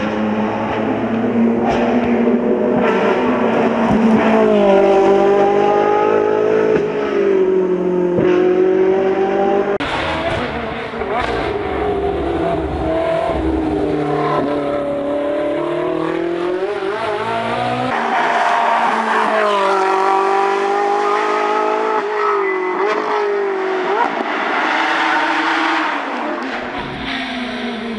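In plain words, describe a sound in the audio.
A race car engine roars and revs hard, its pitch rising and falling as it shifts gears.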